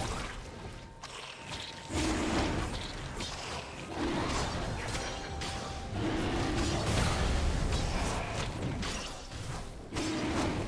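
Fantasy battle effects clash and burst in quick succession.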